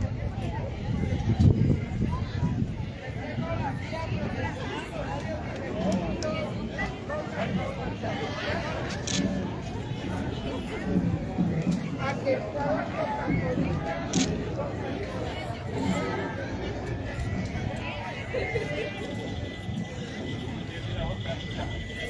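A crowd murmurs and chatters outdoors along a street.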